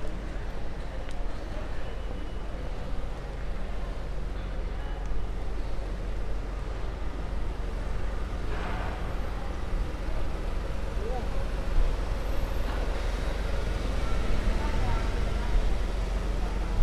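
Footsteps tap on cobblestones outdoors.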